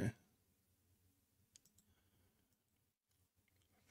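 A man speaks quietly and calmly close to a microphone.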